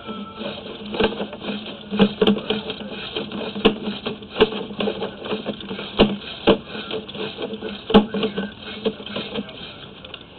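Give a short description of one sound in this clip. A probe on a cable knocks and scrapes against the walls of a narrow well.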